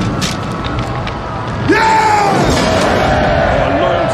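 Fire crackles and roars in a burning town.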